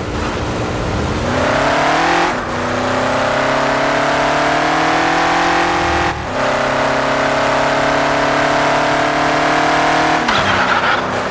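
A car engine roars and rises in pitch as it speeds up, then drops away.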